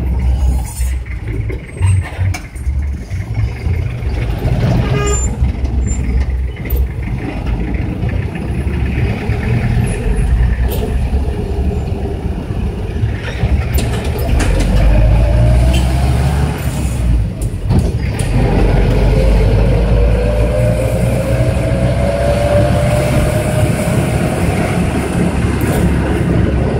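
A minibus engine rumbles steadily.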